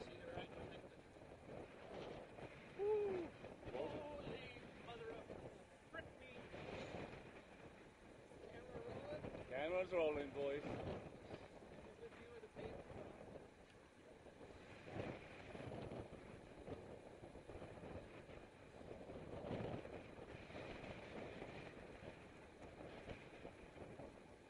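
Wind rushes past a microphone.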